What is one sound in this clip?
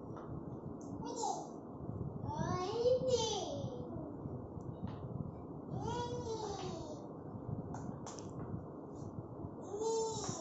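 A small child babbles and squeals nearby.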